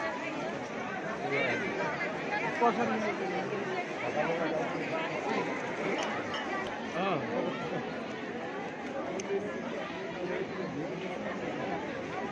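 A large crowd of men and women chatters all around, close by, outdoors.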